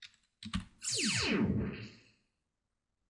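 A game's electronic zap sweeps quickly downward in pitch.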